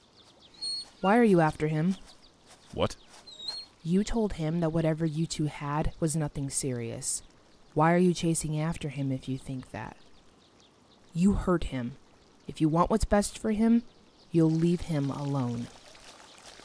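A young woman speaks close by, softly and with feeling.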